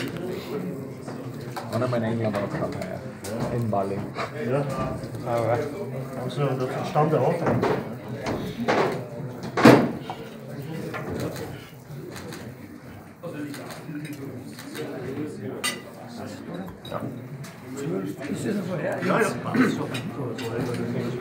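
Several men talk with one another close by.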